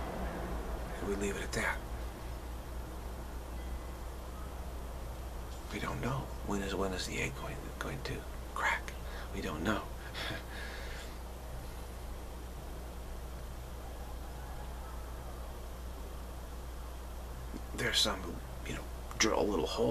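A middle-aged man speaks calmly and slowly, close to the microphone, with long pauses.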